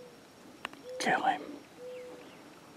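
A wild turkey gobbler gobbles.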